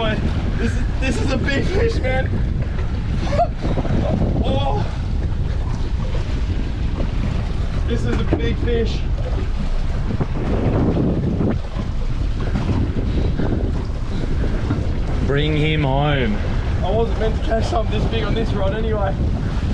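Waves slap against the hull of a boat.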